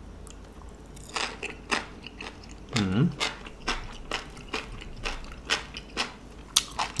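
A man chews food with his mouth full.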